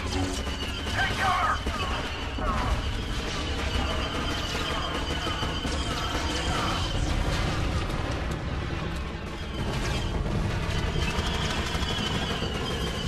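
Blaster fire zaps and crackles in a battle.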